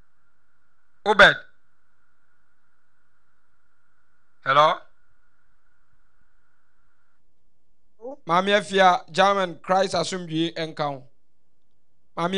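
A young man speaks into a microphone in short bursts, then talks steadily and calmly.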